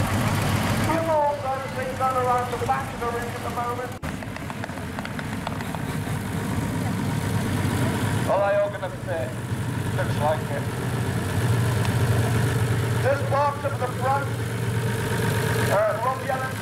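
A large tractor engine drones louder as the tractor drives closer.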